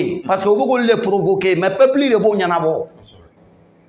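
An elderly man speaks loudly and with animation.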